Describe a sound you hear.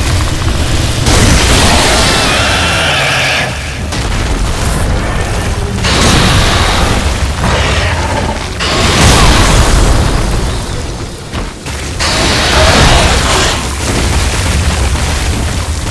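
Blows strike the beast with heavy thuds.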